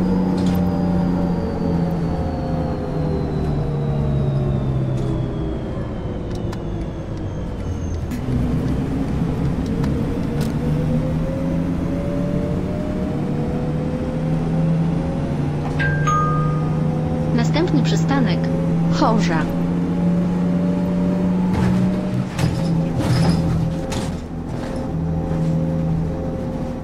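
A bus engine hums steadily and shifts in pitch as the bus changes speed.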